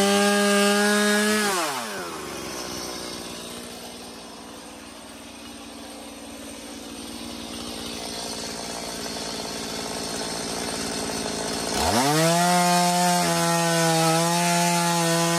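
A chainsaw engine roars close by, winds down to a quiet idle, then revs up loudly again.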